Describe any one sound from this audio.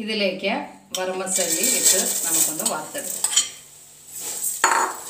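Dry vermicelli pours and rattles into a pan.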